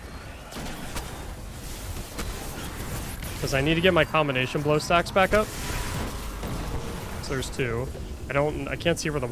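Gunshots and blasts from a video game crackle in the background.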